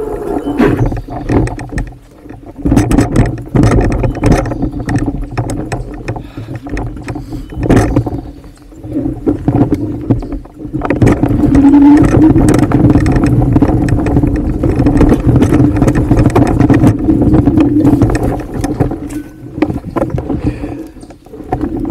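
Bicycle tyres roll and crunch over a bumpy dirt trail.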